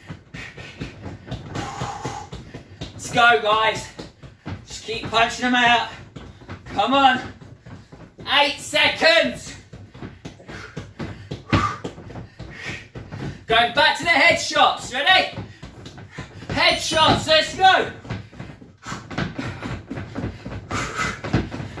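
Fists thump against a padded punching dummy.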